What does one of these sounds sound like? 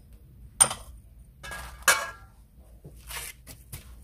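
A metal spoon clinks against a metal bowl.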